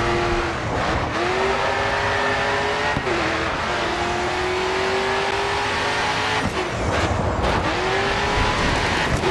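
A racing car engine roars loudly, rising in pitch as it revs through the gears.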